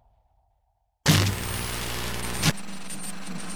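Loud television static hisses and crackles.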